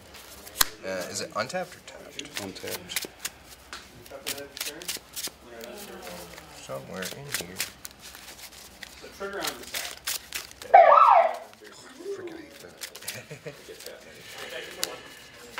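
Playing cards shuffle and flick against each other.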